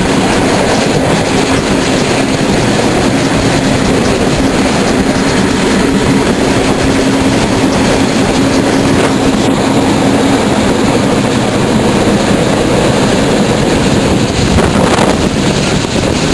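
A steam train rumbles and rattles along the tracks.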